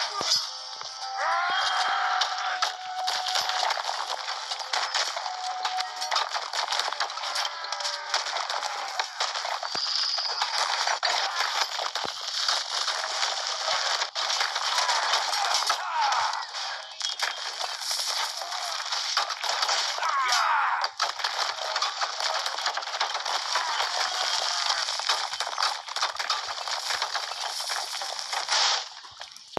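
Swords clash and clang repeatedly in a noisy battle.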